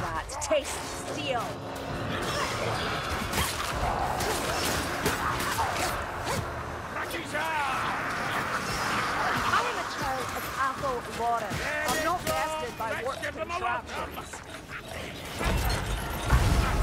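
Swords slash and strike armoured foes with sharp metallic clangs.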